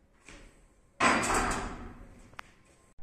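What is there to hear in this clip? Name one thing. A loaded barbell clanks down onto a metal rack.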